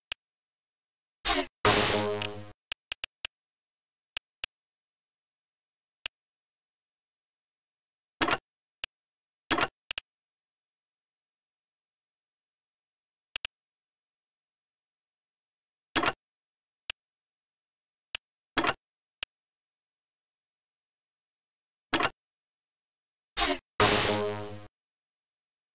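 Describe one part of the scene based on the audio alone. Short electronic menu clicks and beeps sound now and then.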